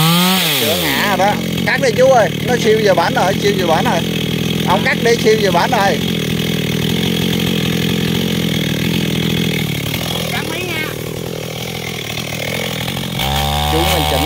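A chainsaw engine idles with a low steady rumble.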